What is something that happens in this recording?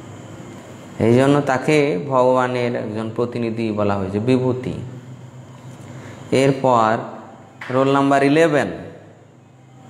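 A middle-aged man sings a slow chant close to a microphone.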